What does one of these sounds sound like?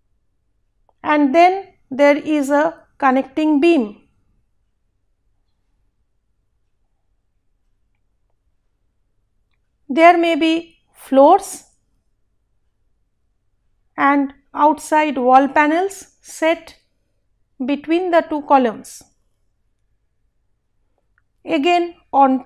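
A woman speaks calmly into a close microphone, explaining in pauses.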